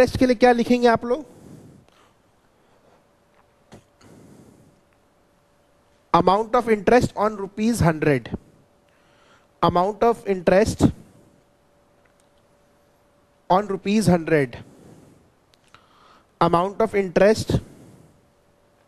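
A young man speaks calmly in bursts, close to a microphone.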